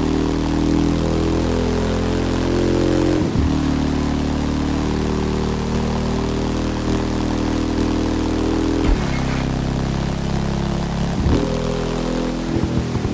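A motorcycle engine roars steadily at high speed, with brief dips as the gears shift.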